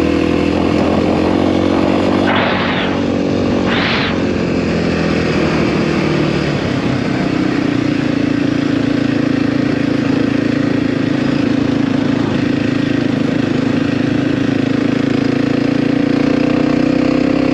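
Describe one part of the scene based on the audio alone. A motorcycle engine drones steadily, changing pitch as the rider shifts and accelerates.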